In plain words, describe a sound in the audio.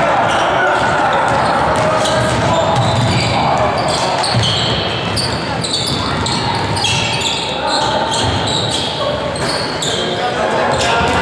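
Basketball shoes squeak on a hardwood court in an echoing gym.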